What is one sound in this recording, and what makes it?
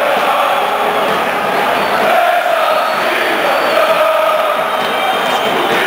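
A large crowd of fans chants loudly in unison.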